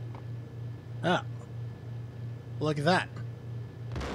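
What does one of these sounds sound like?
Gunshots ring out in a game.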